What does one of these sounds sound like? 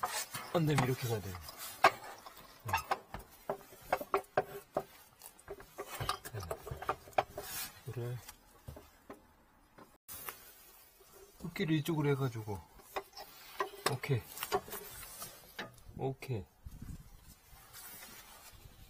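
Plastic hoses rustle and knock against metal as they are handled.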